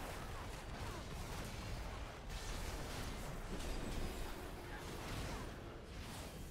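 Swords clash and strike in a game fight.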